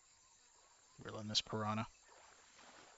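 A man speaks briefly and loudly into a close microphone.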